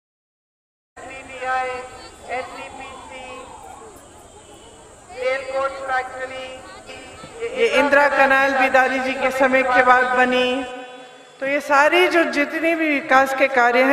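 A woman speaks with animation through a microphone and loudspeakers, outdoors.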